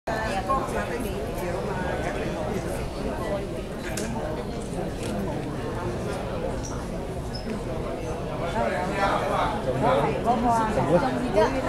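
A woman sings through loudspeakers in a large echoing hall.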